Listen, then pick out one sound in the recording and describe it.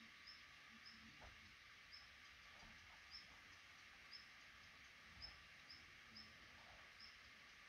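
Baby birds in a nest give short, high chirps again and again.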